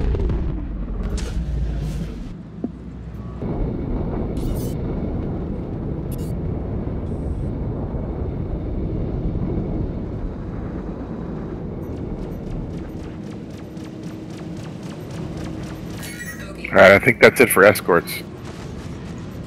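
A spaceship engine hums and rumbles steadily.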